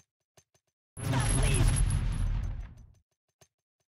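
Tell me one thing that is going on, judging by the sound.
Grenades explode with loud booming blasts.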